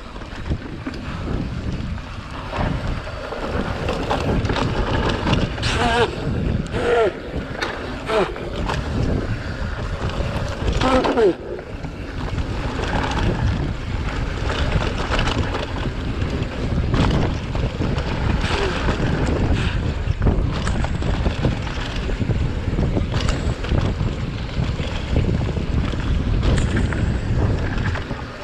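A mountain bike rattles over bumps on a dirt trail.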